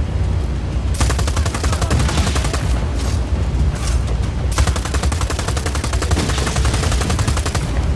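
A heavy mounted gun fires in long rapid bursts.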